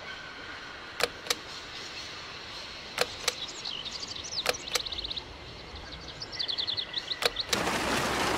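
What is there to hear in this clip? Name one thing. Keypad buttons click and beep as they are pressed one by one.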